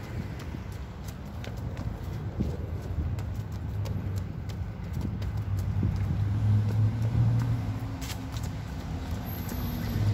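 Footsteps scuff on a pavement outdoors.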